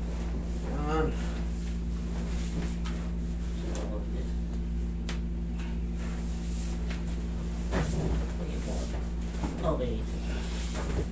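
A man speaks in short bursts nearby.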